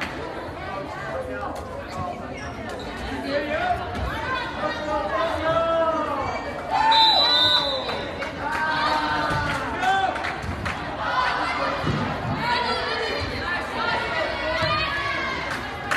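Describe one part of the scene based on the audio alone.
A crowd cheers and calls out in a large echoing gym.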